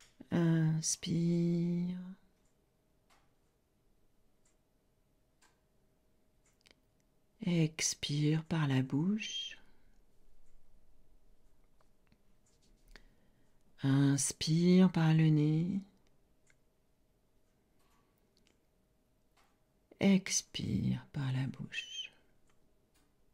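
An older woman speaks calmly and slowly, close to a microphone, in short phrases with long pauses.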